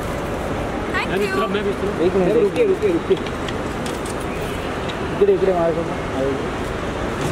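A young woman speaks briefly and cheerfully nearby.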